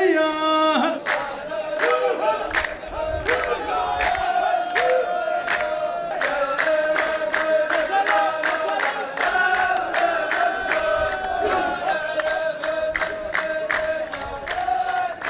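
A group of men claps hands in a steady rhythm.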